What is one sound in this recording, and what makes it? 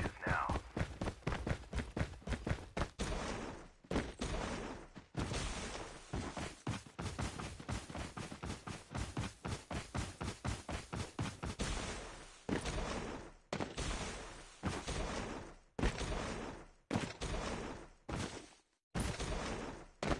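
Quick footsteps run over ground and grass.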